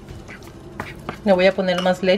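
A spoon stirs thick batter in a bowl.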